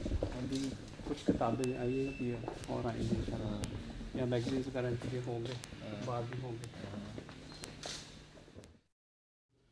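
A man speaks calmly and slowly, close by.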